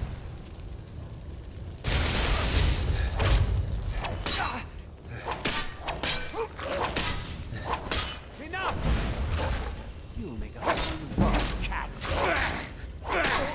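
A magic spell crackles and roars.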